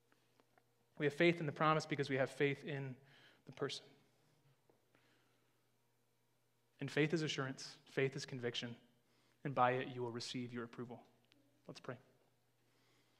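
A man speaks calmly through a microphone, with pauses.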